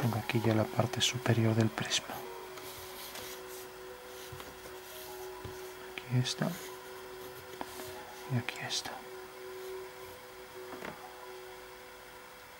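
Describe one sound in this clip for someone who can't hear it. A pencil scratches along paper.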